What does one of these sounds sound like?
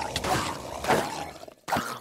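A sword swings and strikes creatures in a game.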